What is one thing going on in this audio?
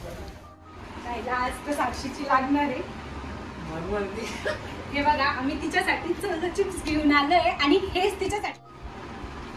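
A young man and a young woman talk casually.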